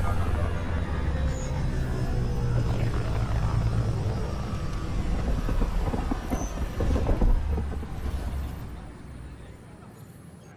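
A spaceship engine roars loudly, then fades away.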